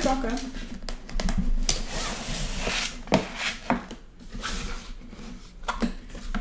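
Cardboard boxes slide and thud on a table.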